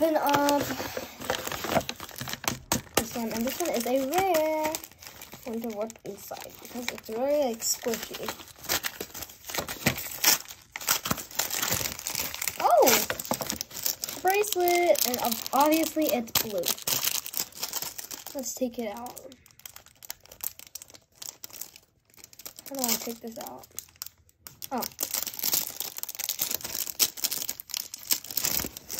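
Paper crinkles and rustles as hands unfold it.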